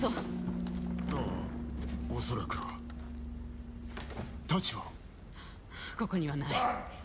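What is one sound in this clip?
A man answers in a low, weary voice.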